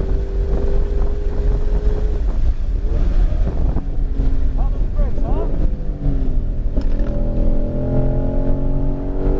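Wind rushes past a fast-moving car.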